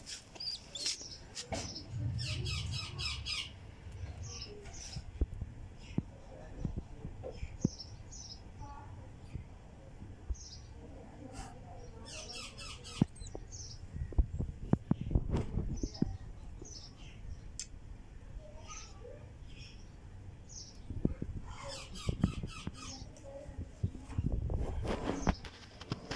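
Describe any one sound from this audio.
A young fantail pigeon gives high, squeaky begging peeps in quick bursts.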